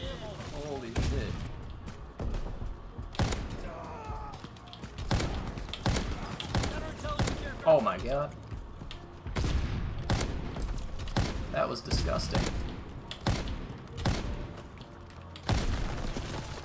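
A sniper rifle fires sharp, booming shots in a video game.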